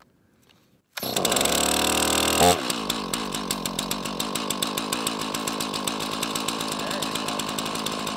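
A chainsaw engine starts and idles loudly.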